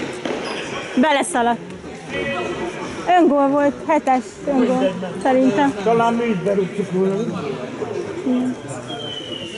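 Players shout to each other in a large echoing hall.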